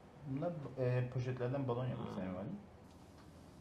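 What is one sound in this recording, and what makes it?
A middle-aged man speaks calmly close to a microphone.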